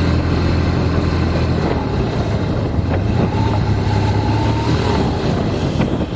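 Wind rushes loudly past close by.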